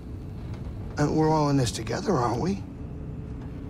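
A creature speaks in a gruff, croaking voice.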